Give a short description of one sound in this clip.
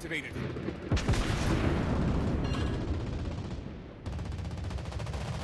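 Heavy ship guns fire with deep, rumbling booms.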